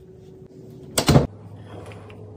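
A ceramic lid clinks onto a canister.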